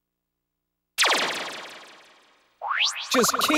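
A bright chime rings and slowly fades.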